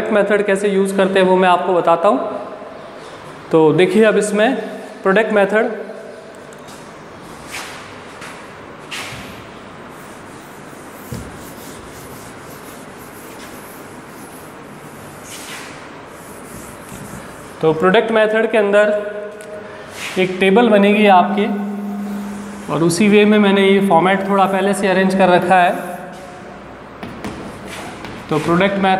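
A man speaks calmly and clearly into a close microphone, explaining.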